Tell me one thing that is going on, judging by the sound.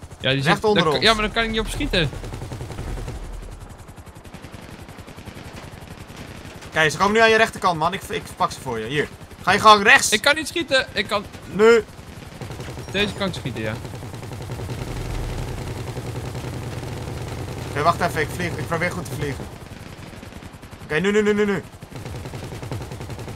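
A helicopter's rotor drones steadily.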